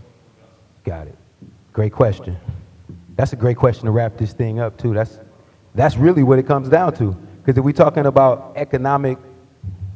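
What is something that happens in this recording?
A man speaks loudly and clearly into a microphone.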